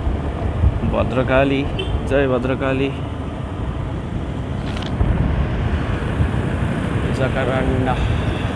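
Wind buffets loudly while riding outdoors.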